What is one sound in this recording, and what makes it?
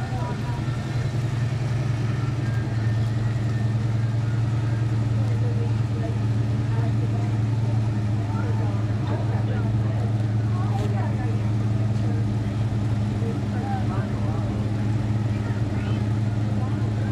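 An old car engine idles with a steady, deep rumble.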